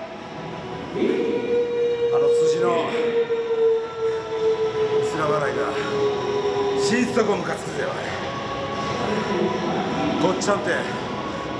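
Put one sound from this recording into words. A man speaks in a gruff, tired voice close to a microphone.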